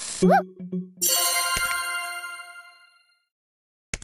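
A short jingle of tones plays.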